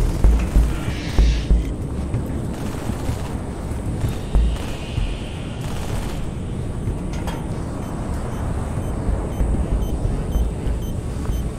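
Muffled gunshots thud repeatedly.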